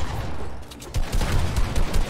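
A gun fires in a video game.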